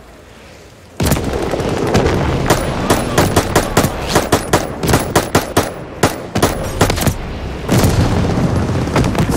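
Rapid gunfire bursts ring out loudly.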